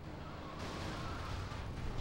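A car crashes into a van with a thud.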